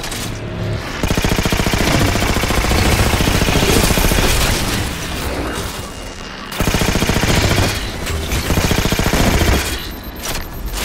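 Rapid gunfire crackles from a weapon.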